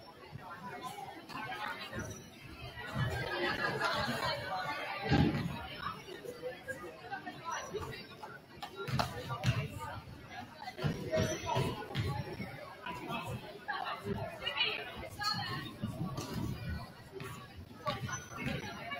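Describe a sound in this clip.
Young people chatter in a large echoing hall.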